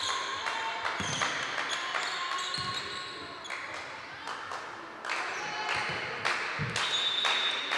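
A volleyball is struck with dull thuds.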